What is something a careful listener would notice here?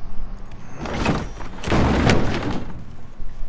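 A heavy metal lid thuds shut.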